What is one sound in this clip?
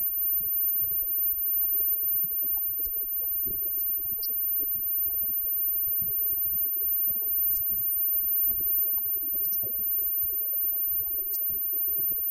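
A live rock band plays loudly.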